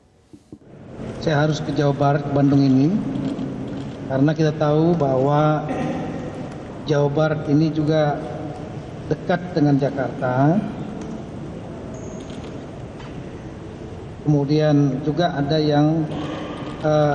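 A man speaks steadily into a microphone, heard through a loudspeaker.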